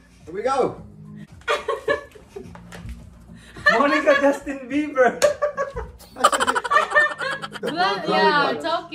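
A group of young women and men talk and laugh loudly, close by.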